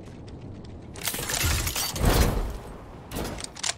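A glider whooshes through the air in a video game.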